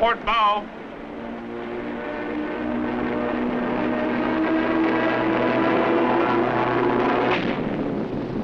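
An airplane engine drones and rises in pitch as it passes.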